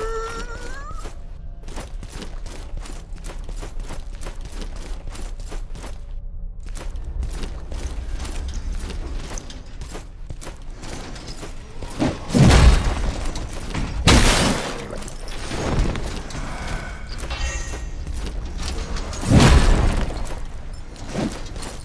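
Footsteps in armour clank on a stone floor.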